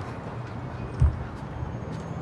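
A small metal object clatters onto the pavement.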